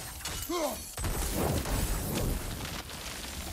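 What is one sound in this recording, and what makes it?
A magical blast bursts with a deep, rumbling roar.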